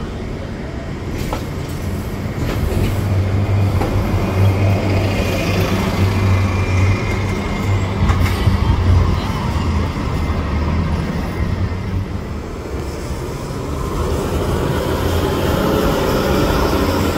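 Street traffic hums steadily outdoors.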